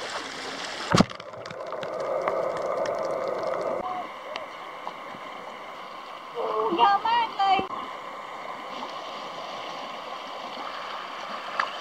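Water laps around rocks.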